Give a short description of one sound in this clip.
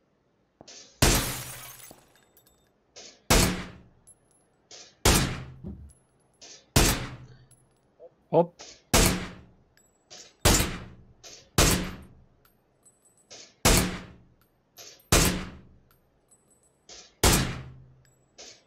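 A rifle fires loud single shots at a steady pace, each one ringing out briefly.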